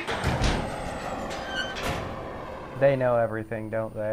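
A truck door slams shut.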